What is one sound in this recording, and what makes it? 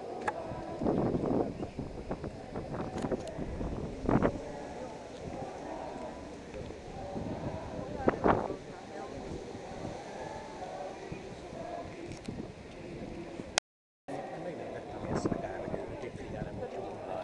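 A crowd of young men and women chatters nearby outdoors.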